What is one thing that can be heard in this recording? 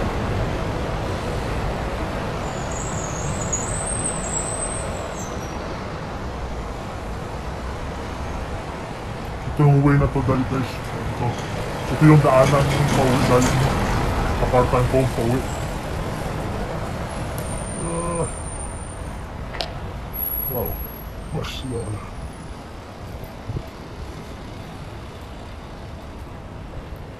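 Traffic passes on a city street.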